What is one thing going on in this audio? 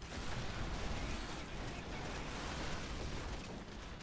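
Explosions boom as debris breaks apart.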